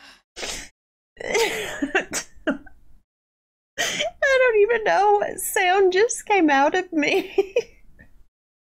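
A young woman laughs loudly and shrieks.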